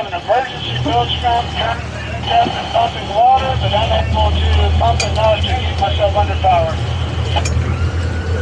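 A man talks loudly across the water.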